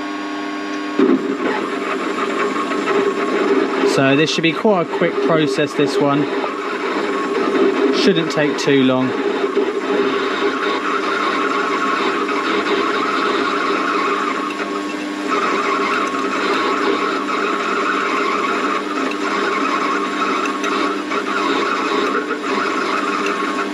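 A cutting tool scrapes and hisses against turning metal.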